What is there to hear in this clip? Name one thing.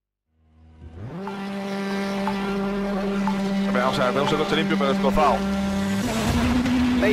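A rally car engine idles and revs loudly.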